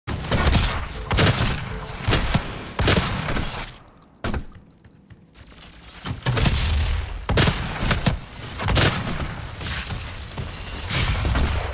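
Gunshots fire in rapid bursts with heavy booms.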